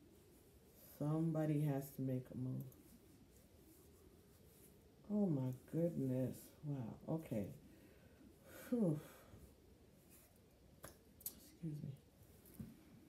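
A middle-aged woman speaks calmly and close by, in short bursts with pauses.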